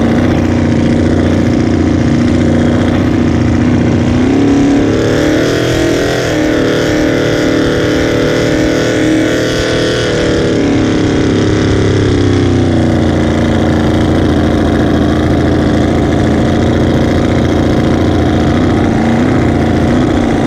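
Water sprays and rushes against the hull of a speeding boat.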